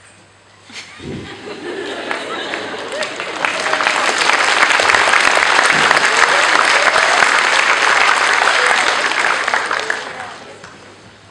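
An audience applauds and cheers loudly in a large hall.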